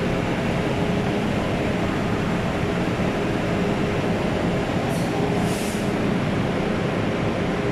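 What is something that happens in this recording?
A train rumbles steadily as it pulls slowly out of a station.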